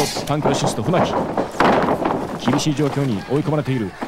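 Bodies thud onto a mat.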